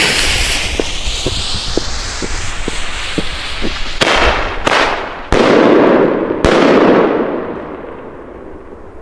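A smoke firework hisses loudly as it spews smoke.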